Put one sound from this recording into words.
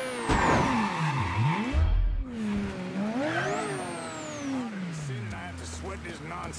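A car engine revs and roars as the car speeds up and slows down.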